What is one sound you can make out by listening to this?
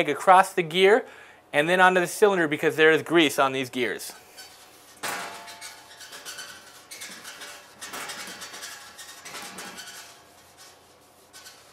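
A cloth rubs against a metal roller.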